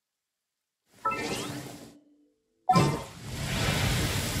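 A magical ring crackles and hums around a game character.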